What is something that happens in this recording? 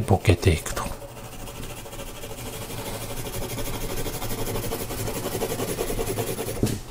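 A pen scratches quickly across paper in short strokes.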